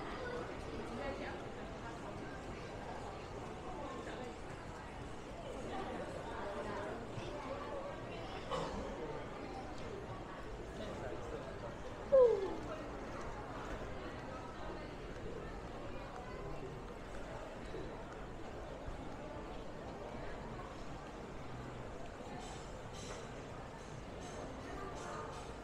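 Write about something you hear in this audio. Distant voices murmur faintly under a high roof.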